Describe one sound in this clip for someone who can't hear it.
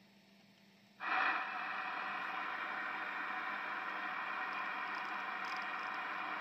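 A radio hisses with loud, steady static.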